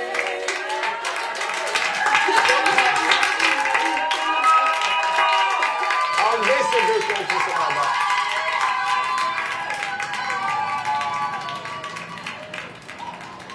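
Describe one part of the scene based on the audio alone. Young women cheer and whoop with excitement close by.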